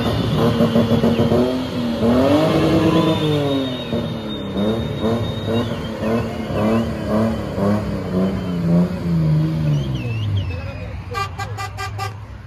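A car rolls slowly past nearby.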